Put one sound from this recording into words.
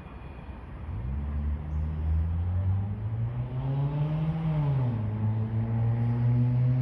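A train hums steadily in the distance as it approaches, growing louder.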